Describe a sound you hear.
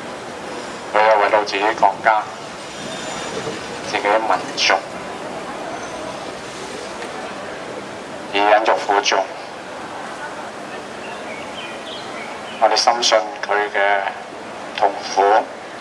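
An older man speaks loudly into a microphone through a loudspeaker in short bursts.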